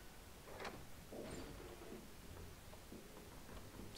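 Heavy wooden doors swing open.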